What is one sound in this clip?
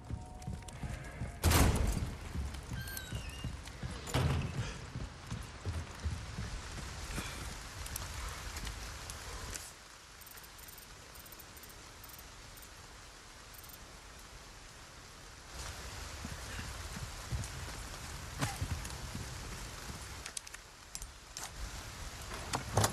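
Footsteps thud on wooden and stone floors.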